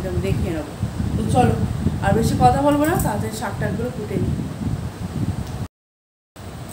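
A woman speaks close by with animation.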